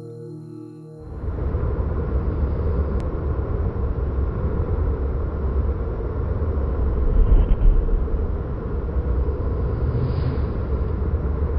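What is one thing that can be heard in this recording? Wind blows and buffets outdoors.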